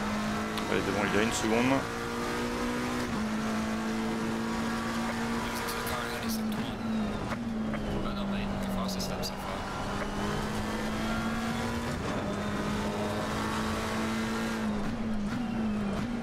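A racing car engine drones steadily, its pitch dropping and rising again with each gear change.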